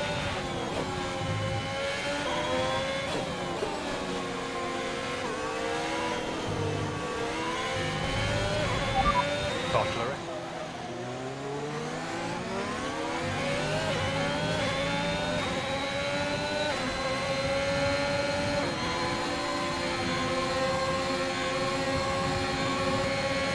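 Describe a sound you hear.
A racing car engine whines loudly, rising and falling in pitch as it speeds up, shifts gears and slows for corners.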